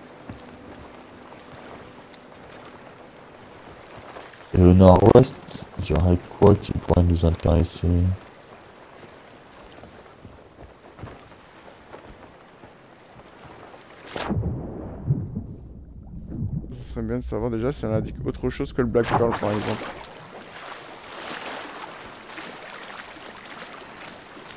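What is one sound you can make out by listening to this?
Ocean waves wash and churn.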